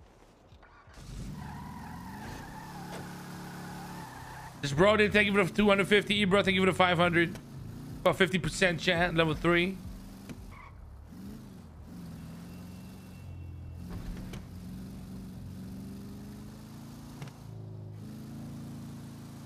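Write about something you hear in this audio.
A car engine starts and runs with a low rumble as the car drives off.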